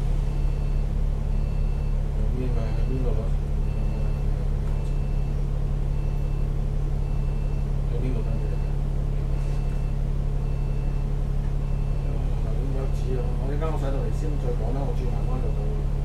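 A bus engine rumbles steadily at low pitch.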